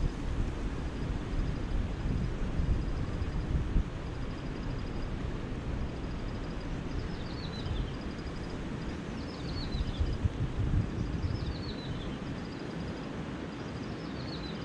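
A shallow river flows steadily over stones.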